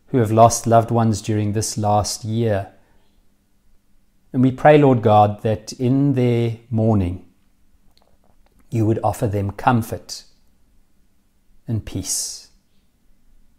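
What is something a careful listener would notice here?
A man speaks calmly and close to a microphone, reading out.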